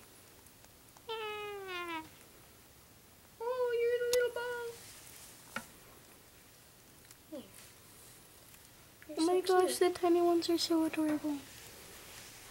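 A small girl speaks in a high, playful voice.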